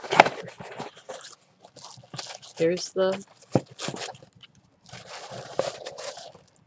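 Paper and plastic rustle as a box is unpacked.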